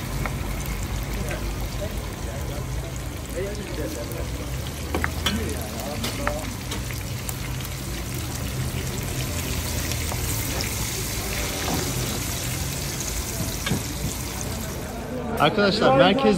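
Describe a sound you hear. Meat sizzles and bubbles in hot oil.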